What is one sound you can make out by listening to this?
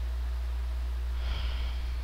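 A young man murmurs briefly into a headset microphone.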